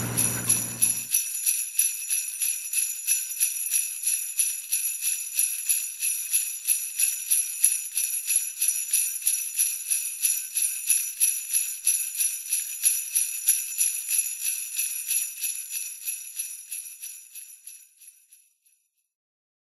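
A small bell rings quickly and steadily.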